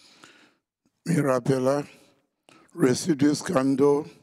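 A man speaks slowly and clearly in a large echoing hall.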